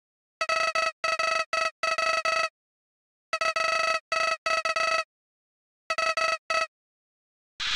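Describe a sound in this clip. Rapid, high electronic beeps chatter in short bursts.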